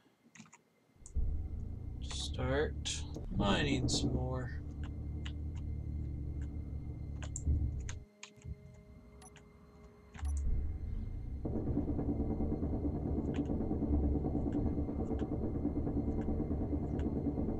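A mining drill grinds steadily through rock, with a loud rumble.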